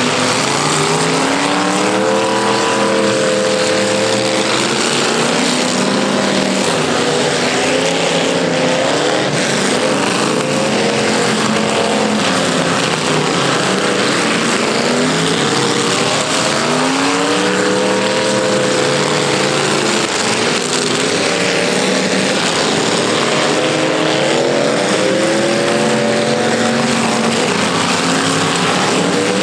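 Car engines roar and rev loudly outdoors.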